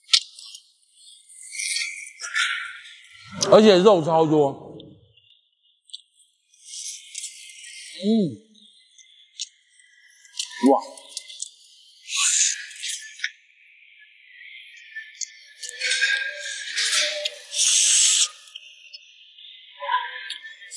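Shells clatter as they are handled.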